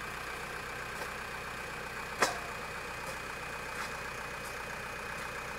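A shovel scrapes and chops into dirt.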